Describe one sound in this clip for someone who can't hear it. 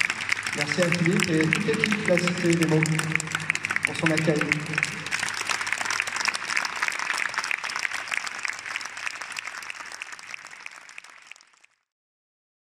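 An audience applauds and then the applause fades away.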